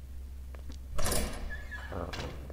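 A door swings open with a loud rush.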